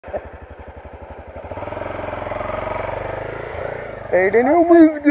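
A motorcycle engine idles and revs close by.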